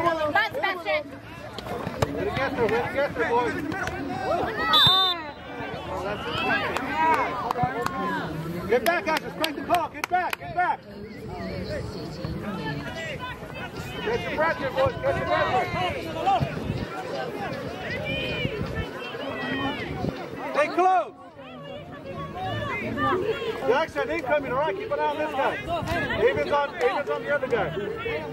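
Many children shout and call out across an open field.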